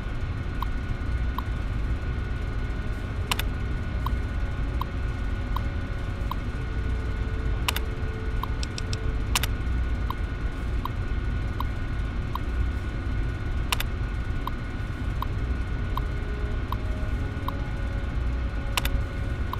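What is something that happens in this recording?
A computer terminal gives soft, rapid blips as text prints out.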